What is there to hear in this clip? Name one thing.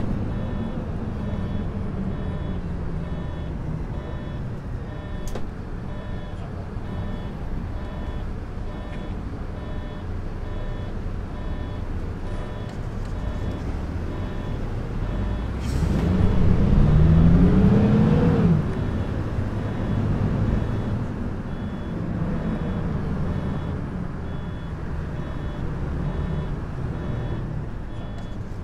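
A diesel city bus engine hums as the bus drives along a street.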